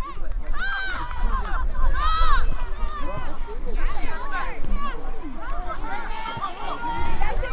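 Young women shout and call out to one another across an open field.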